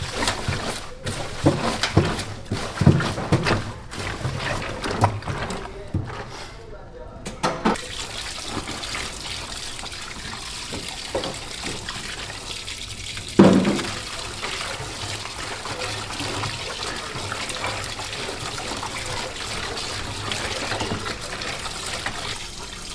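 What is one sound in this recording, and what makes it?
Gloved hands squelch and slosh through a mass of wet, slippery innards.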